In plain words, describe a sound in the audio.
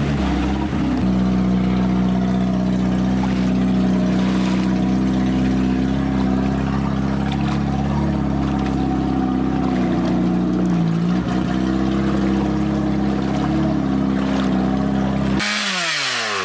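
An engine drones steadily.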